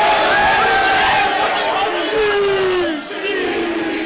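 A group of young men cheer and yell together.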